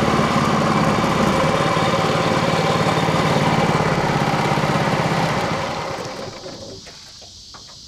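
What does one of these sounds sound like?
A boat's outboard motor drones loudly, then winds down and stops.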